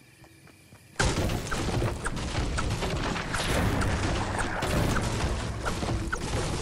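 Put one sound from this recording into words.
A pickaxe chops rapidly into wood.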